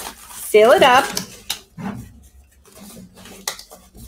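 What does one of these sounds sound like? A plastic tape dispenser clatters as it is picked up.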